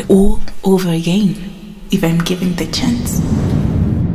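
A young woman sings close by.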